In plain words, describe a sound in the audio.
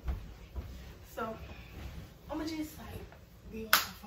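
Pillows thump softly on a bed.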